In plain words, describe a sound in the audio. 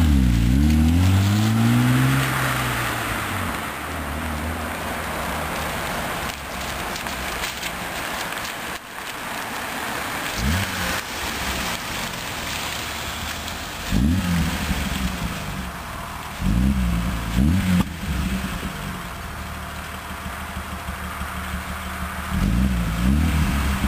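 Tyres squeal and hiss on wet tarmac as a car spins.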